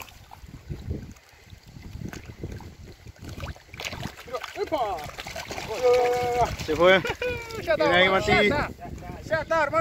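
Small waves lap against the shore.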